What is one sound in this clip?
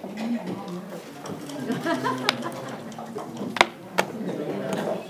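Plastic game pieces click against a wooden board.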